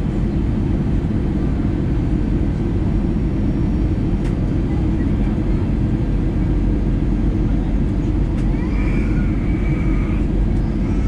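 A jet engine roars steadily from inside a cabin.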